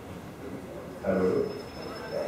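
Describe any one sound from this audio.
A man speaks briefly, heard from a distance.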